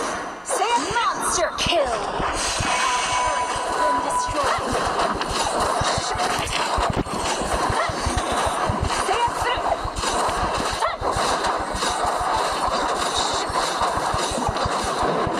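Game characters clash with rapid hits and spell blasts.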